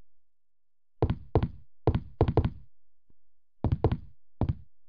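Heavy footsteps thud steadily across a wooden floor.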